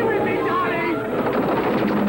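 A crowd shouts and runs in panic.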